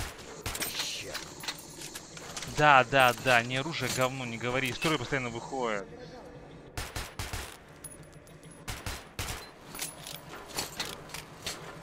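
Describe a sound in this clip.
A gun's parts click and clack as it is reloaded.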